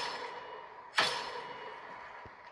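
A video game gunshot cracks from a phone speaker and echoes away.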